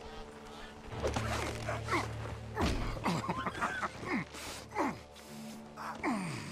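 A man grunts and groans nearby.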